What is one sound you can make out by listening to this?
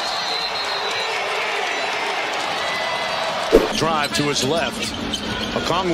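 A large arena crowd roars and cheers.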